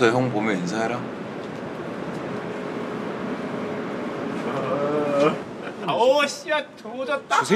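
A young man speaks in an upset, strained voice, close by.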